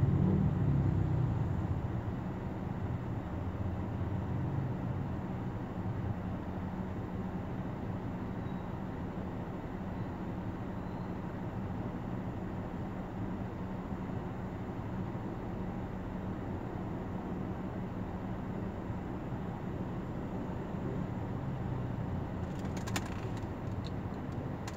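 An engine idles with a steady low rumble nearby.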